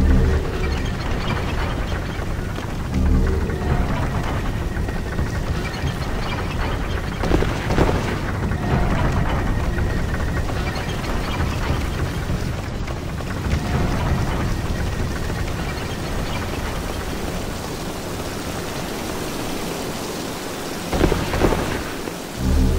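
A low rumbling drone echoes throughout.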